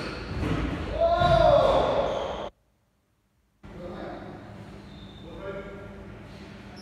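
A man talks casually in a large echoing room.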